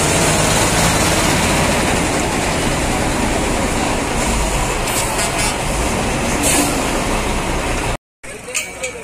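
A heavy truck engine idles with a low rumble.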